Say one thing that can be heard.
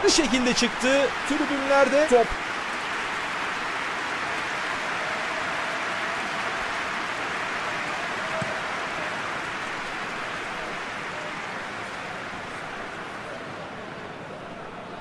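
A large stadium crowd roars steadily and slowly fades.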